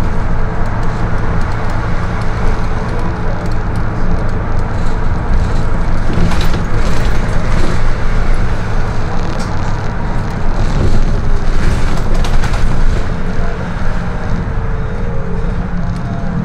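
A bus engine hums and rumbles steadily from inside the bus.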